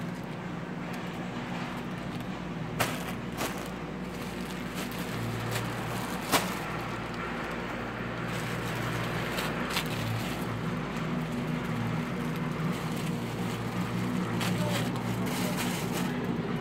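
Plastic wrapping rustles and crinkles close by.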